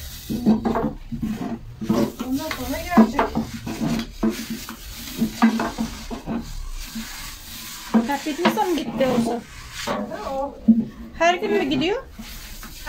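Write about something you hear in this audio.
A middle-aged woman talks with animation nearby.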